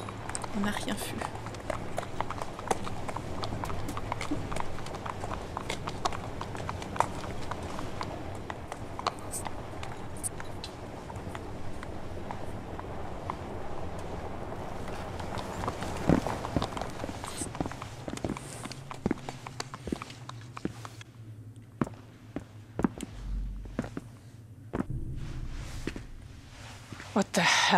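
A young woman speaks quietly into a microphone close by.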